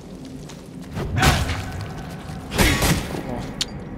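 A blade slashes and strikes flesh with heavy bursts.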